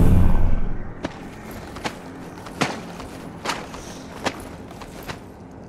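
Heavy metal footsteps clank at a steady walking pace.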